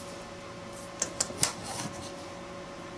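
A small object knocks lightly as it is set down on a hard surface.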